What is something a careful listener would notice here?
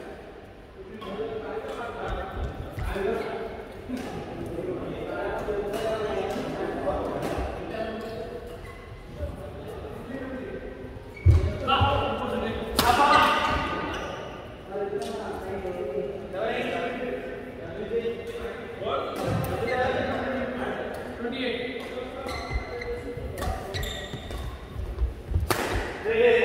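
Several men talk and call out across the hall.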